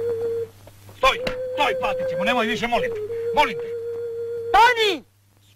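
Men shout pleadingly outdoors.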